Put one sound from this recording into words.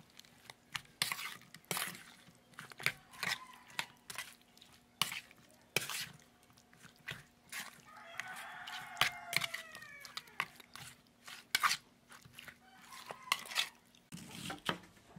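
A metal spoon clinks and scrapes against a metal pot while stirring wet meat.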